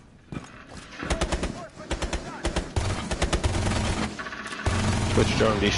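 A rapid burst of gunfire rattles close by.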